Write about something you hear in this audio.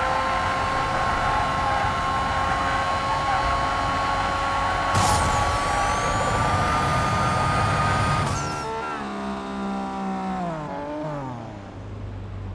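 A race car engine roars at high revs, then winds down and slows to a low idle.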